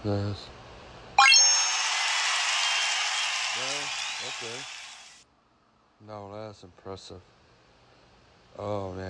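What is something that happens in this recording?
A man speaks close to a phone microphone.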